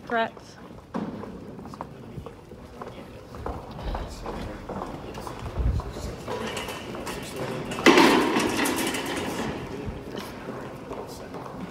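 A group of people murmur and shuffle in a crowded hallway.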